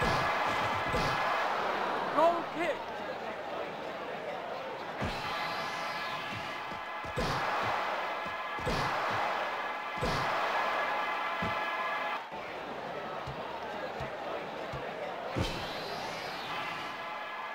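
Upbeat electronic game music plays steadily.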